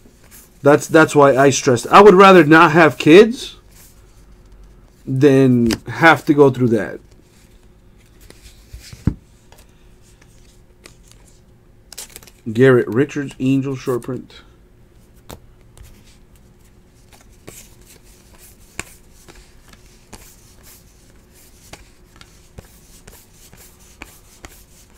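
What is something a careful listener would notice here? Stiff cards rustle and click as hands flip through them.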